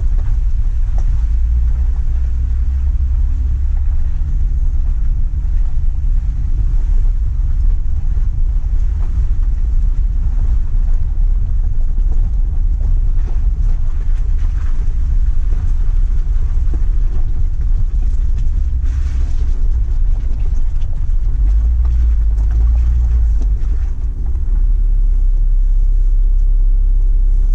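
A vehicle engine rumbles steadily as it drives slowly along a rough dirt road.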